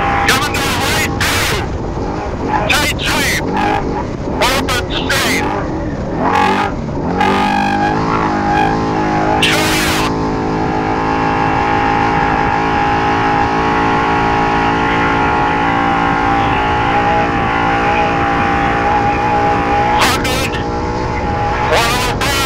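An engine roars steadily as a vehicle drives along.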